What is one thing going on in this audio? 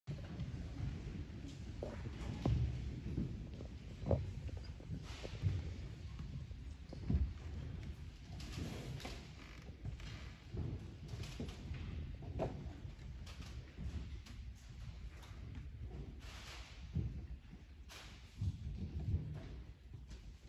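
An audience murmurs and chatters nearby.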